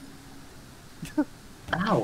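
Water sprays from a leaking tank.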